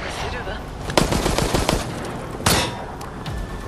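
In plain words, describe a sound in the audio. Heavy blows land with sharp thuds in a video game fight.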